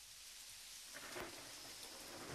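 A swinging door thumps as it swings shut.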